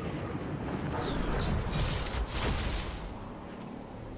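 A glider snaps open with a loud whoosh.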